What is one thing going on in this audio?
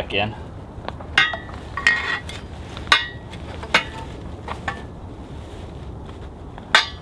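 Metal poles clink and click together.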